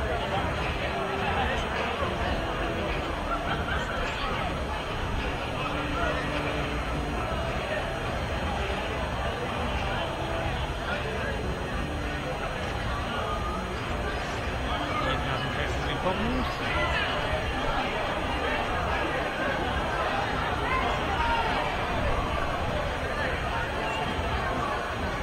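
A crowd of people chatter outdoors at a distance.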